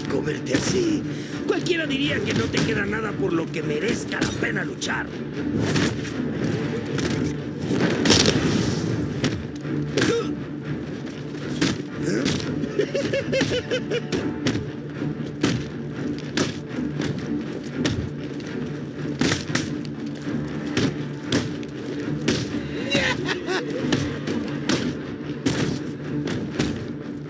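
Several men shout and grunt as they fight.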